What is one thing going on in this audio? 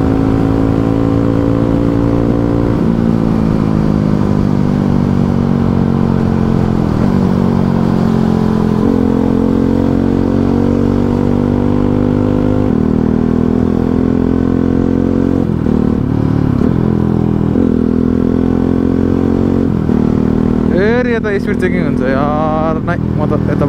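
A motorcycle engine hums steadily up close, its pitch dipping and rising with each gear change.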